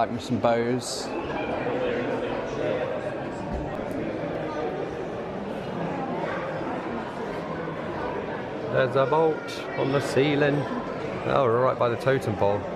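A crowd of visitors murmurs and chatters in a large, echoing hall.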